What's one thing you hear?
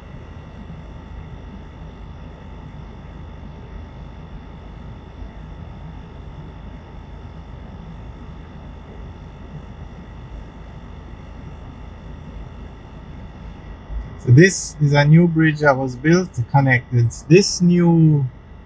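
A vehicle's tyres rumble steadily on a paved road.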